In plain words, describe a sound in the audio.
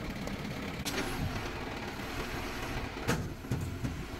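Metal levers clunk as they are pushed and pulled.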